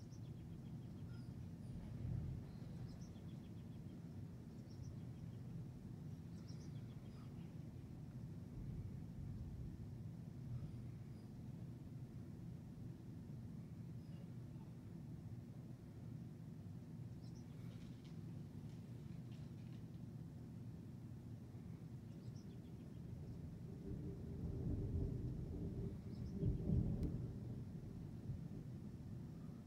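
Wind rustles through tree leaves.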